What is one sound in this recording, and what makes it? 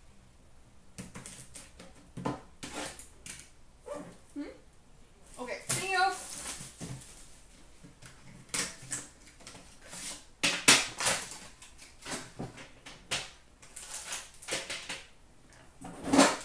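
Cardboard and foil wrappers rustle and tear as packs are opened.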